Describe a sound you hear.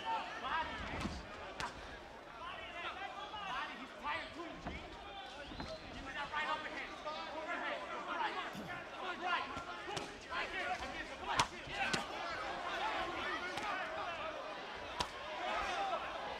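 Boxing gloves thud sharply as punches land.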